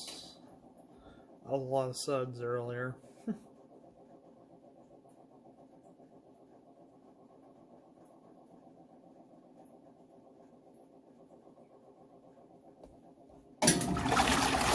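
A washing machine motor hums quietly.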